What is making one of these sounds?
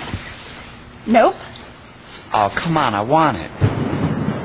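A young woman cries out in alarm nearby.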